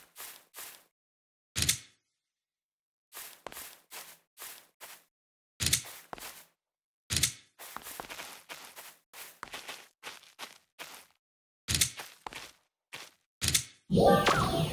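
Footsteps thud on the ground in short bursts.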